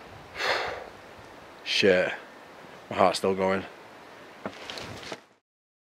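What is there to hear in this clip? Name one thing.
A man speaks quietly close to the microphone.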